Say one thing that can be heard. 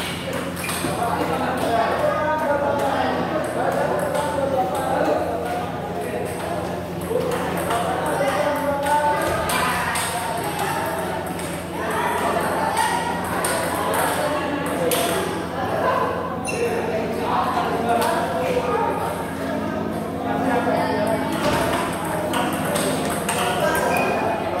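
People chatter in the background of an echoing hall.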